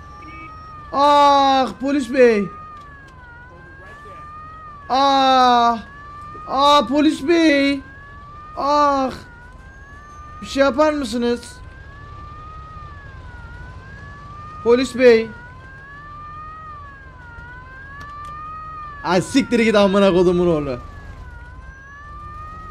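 A police siren wails up and down in the background.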